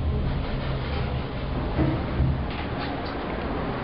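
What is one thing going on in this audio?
Elevator doors slide open with a low rumble.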